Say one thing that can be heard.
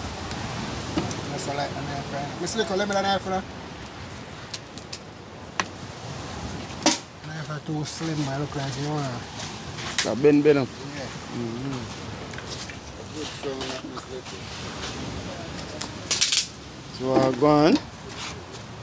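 A man talks calmly and close by, outdoors.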